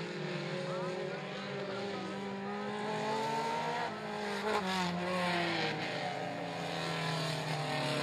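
Tyres skid on loose dirt.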